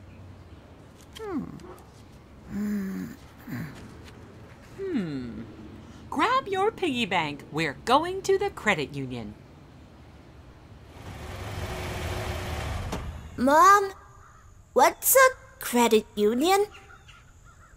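A puppet character talks in a high, childlike voice with animation.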